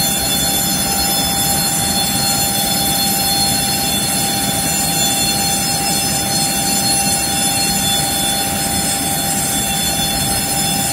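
A jet airliner's auxiliary power unit whines steadily.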